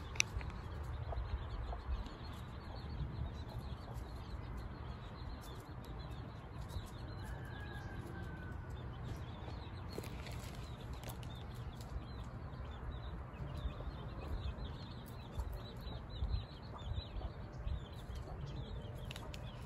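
Ducklings peep softly and rapidly nearby.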